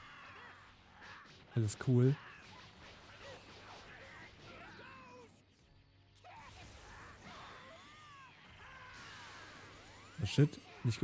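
Energy beams whoosh and crackle.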